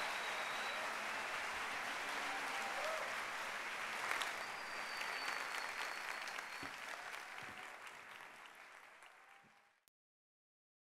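A large audience applauds and cheers in a big hall, then fades out.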